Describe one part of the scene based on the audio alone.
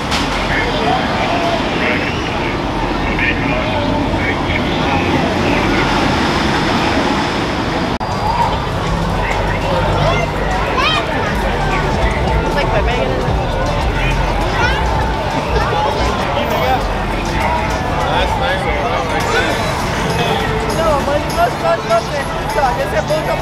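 A dense crowd chatters and talks all around outdoors.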